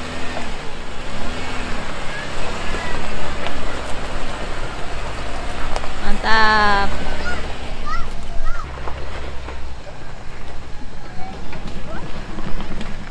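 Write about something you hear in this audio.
An off-road vehicle's engine rumbles low as it crawls over rough ground.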